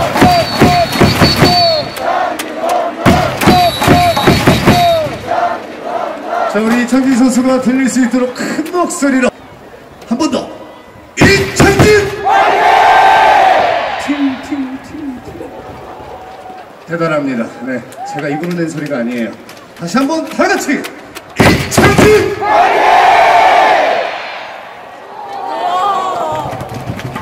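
A large stadium crowd chants and cheers outdoors.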